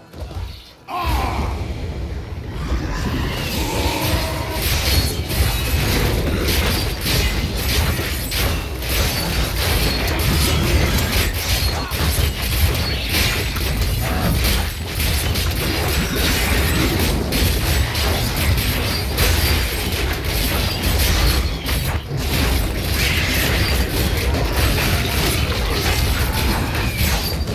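Game spells crackle and bang in a fast, busy fight.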